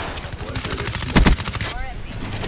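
A gun fires a rapid burst at close range.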